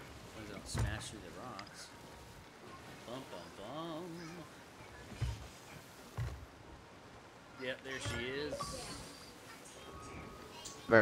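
Ocean waves wash and splash against a wooden ship.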